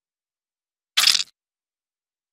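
A bug is squashed with a short, wet squelch.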